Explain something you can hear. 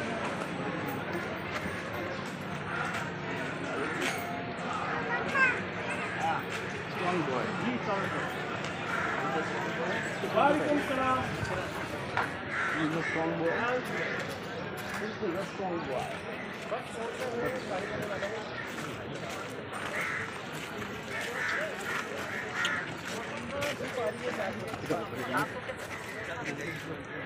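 A crowd of men and women talk and call out close by, outdoors.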